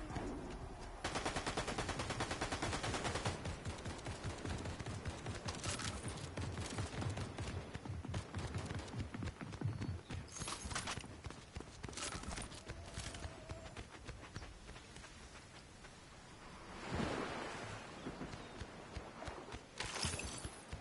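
Footsteps patter quickly on stone paving.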